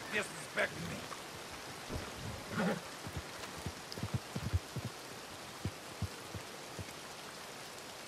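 Boots squelch through wet mud with slow footsteps.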